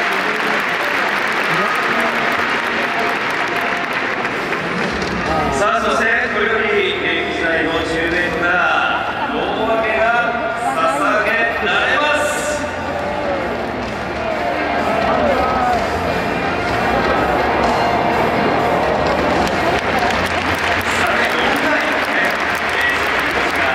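A large crowd murmurs and chatters in a big open stadium.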